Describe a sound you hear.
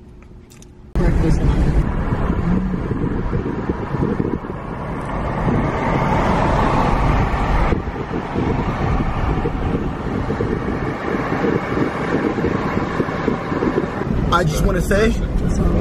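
A car engine hums and tyres roll on the road.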